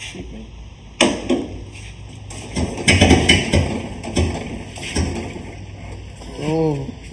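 A hand crank clanks as an old engine is turned over by hand.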